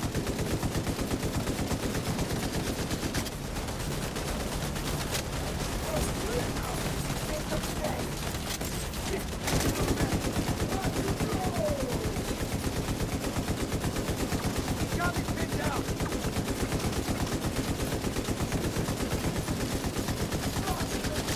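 Rapid gunfire rattles on and off.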